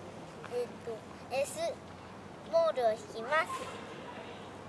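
A young boy speaks clearly, close by.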